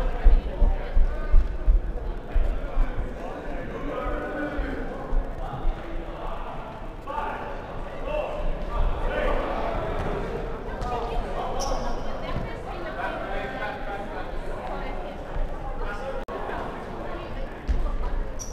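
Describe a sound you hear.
Players shout and call to each other in a large echoing hall.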